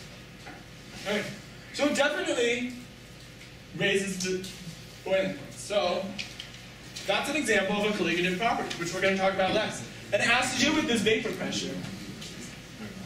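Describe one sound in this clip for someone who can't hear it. A young man speaks calmly and clearly, a little way off.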